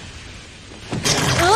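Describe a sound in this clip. A young boy cries out.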